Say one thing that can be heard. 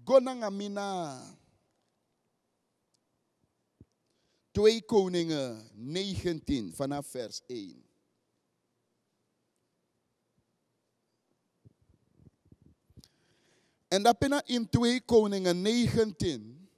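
A man preaches with feeling into a microphone, in bursts with long pauses.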